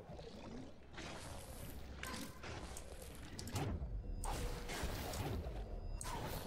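Soft magical whooshes and shimmering chimes sound in bursts.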